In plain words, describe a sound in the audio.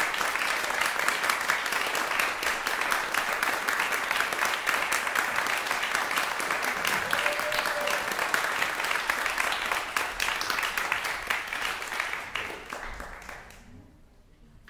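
An audience applauds in an echoing hall, then the clapping fades away.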